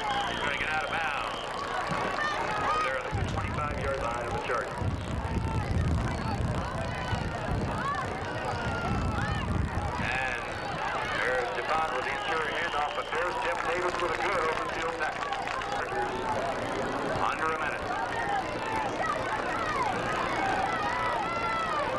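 A crowd of spectators cheers and shouts outdoors.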